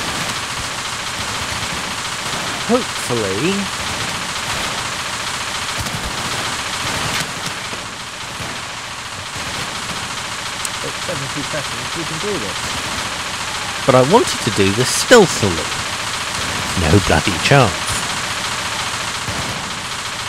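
A drill whirs steadily as it bores into metal.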